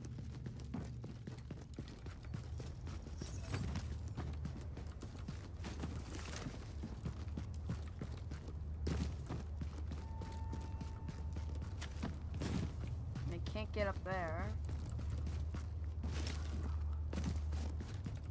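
Footsteps crunch on snow and gravel.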